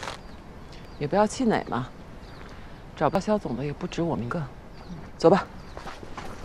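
A woman speaks calmly and firmly nearby.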